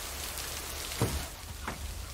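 A van door slams shut.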